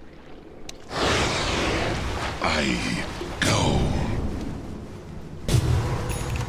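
Magic spells whoosh and crackle in a video game.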